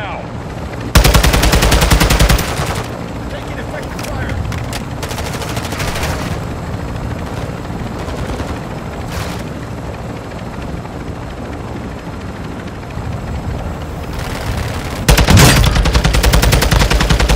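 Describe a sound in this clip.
An automatic rifle fires rapid bursts close by.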